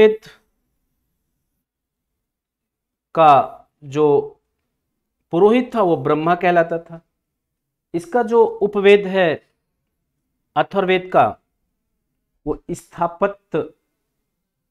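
A middle-aged man speaks calmly and clearly into a clip-on microphone, in short phrases with pauses.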